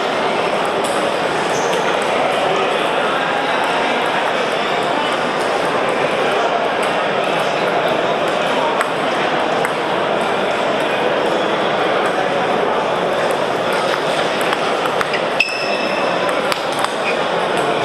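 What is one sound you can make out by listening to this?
Table tennis balls click against paddles and tables.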